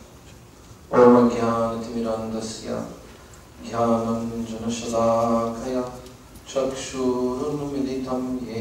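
A man sings loudly through a microphone.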